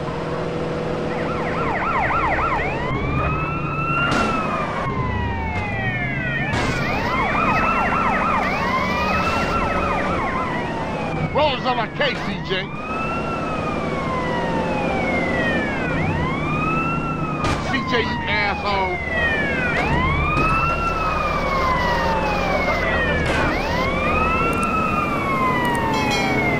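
A police siren wails, rising and falling, throughout.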